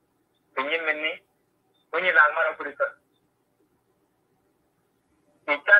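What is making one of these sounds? A man speaks calmly over an online call, in short phrases.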